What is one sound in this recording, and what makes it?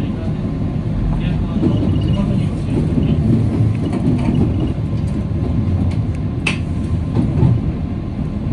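Train wheels clack over rail joints and points.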